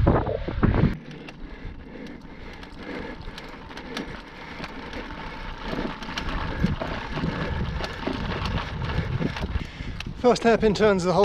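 Bicycle tyres rumble over cobblestones.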